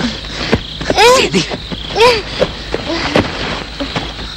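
A young woman cries out in fear nearby.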